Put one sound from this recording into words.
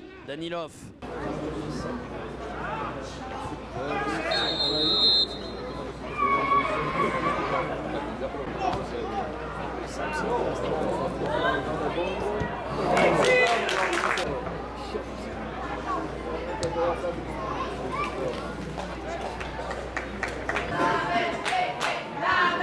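Football players shout to each other across an open outdoor field.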